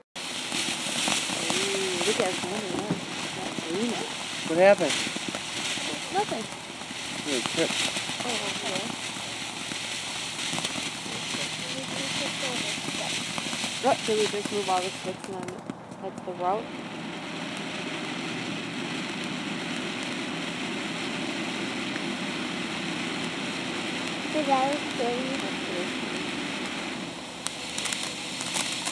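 A firework fountain hisses and crackles steadily.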